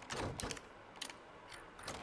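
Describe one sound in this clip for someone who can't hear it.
A key turns in a door lock with a metallic click.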